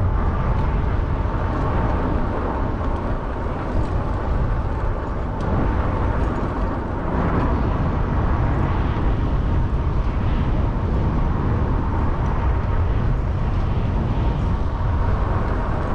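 Wind rumbles and buffets against a moving microphone outdoors.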